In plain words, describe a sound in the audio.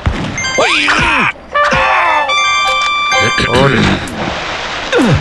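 Bright chiming tones ring out as coins are picked up.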